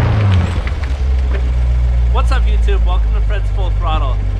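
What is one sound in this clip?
A sports car engine idles with a deep, steady rumble.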